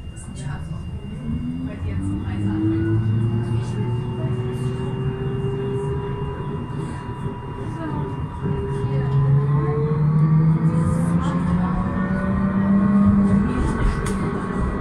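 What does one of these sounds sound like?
A tram motor whines, rising and falling in pitch as the tram speeds up.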